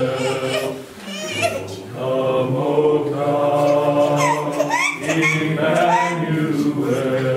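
A keyboard plays along with a choir.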